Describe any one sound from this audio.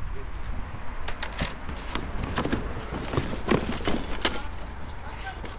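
Hands rummage through a cardboard box with a papery rustle.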